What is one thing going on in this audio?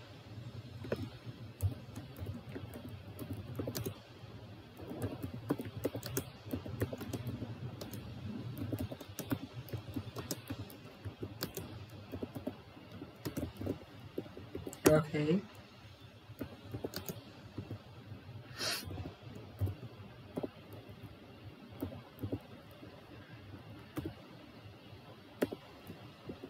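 Keys click on a computer keyboard.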